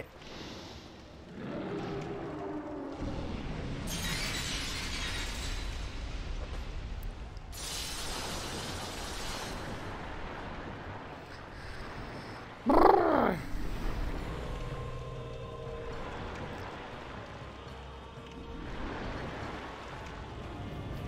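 Icy wind howls and hisses.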